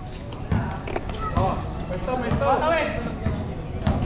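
Young men shout during the game outdoors.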